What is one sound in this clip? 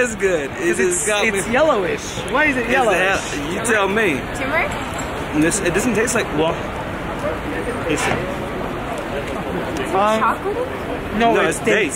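A second young man talks close by.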